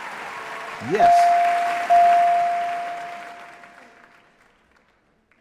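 A bright chime rings and slowly fades.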